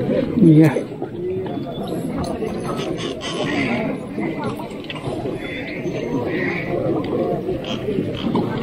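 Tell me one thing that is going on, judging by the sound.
A large crowd chatters and calls out across the water outdoors.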